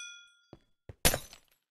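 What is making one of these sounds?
A sword strikes with a sharp hit.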